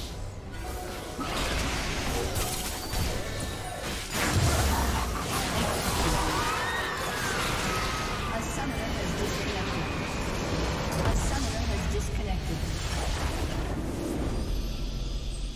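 Game battle effects whoosh, zap and clash rapidly.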